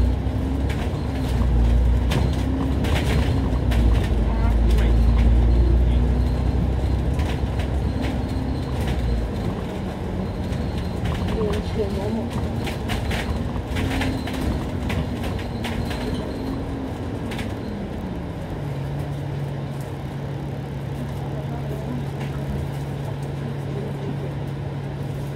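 A bus engine rumbles and whines as the bus drives, then settles into a steady low idle.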